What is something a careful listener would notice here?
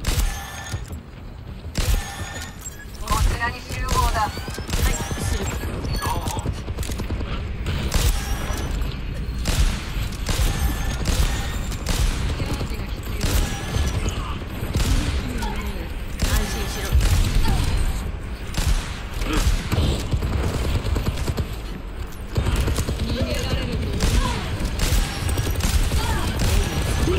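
Gunfire and energy blasts crackle in rapid bursts.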